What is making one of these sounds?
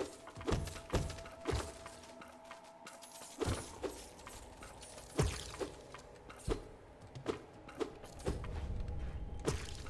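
A sword slashes through the air with sharp swishes.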